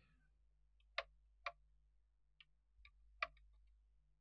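Telephone keys click as a finger dials.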